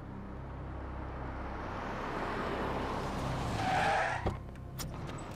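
A van drives up and brakes to a stop.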